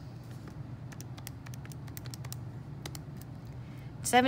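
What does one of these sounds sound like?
Calculator buttons click as they are pressed.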